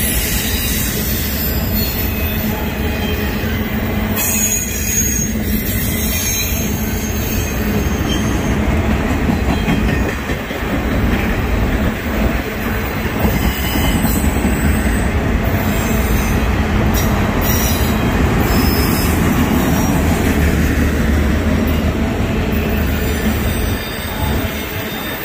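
A freight train rumbles past close by, its wheels clattering steadily on the rails.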